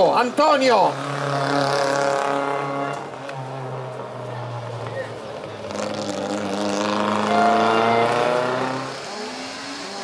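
A small car engine revs hard and drives away.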